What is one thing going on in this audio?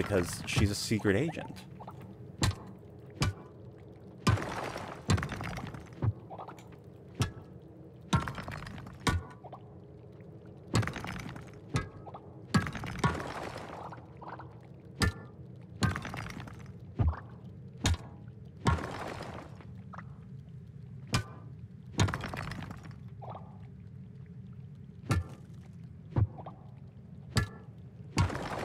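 A pickaxe strikes rock again and again with sharp clinks.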